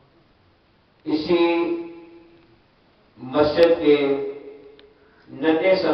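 A man chants in long drawn-out phrases through a microphone and loudspeakers.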